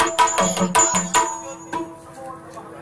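Drums and cymbals strike loudly.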